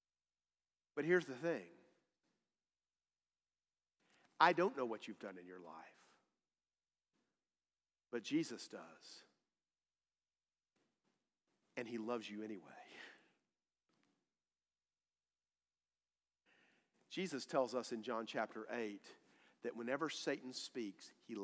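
A man speaks through a microphone in bursts with long pauses, in a room with a slight echo.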